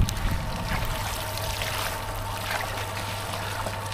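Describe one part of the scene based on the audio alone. Water splashes as a net is lifted.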